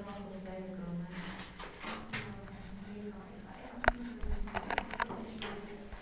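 A man talks, his voice echoing in a narrow stone passage.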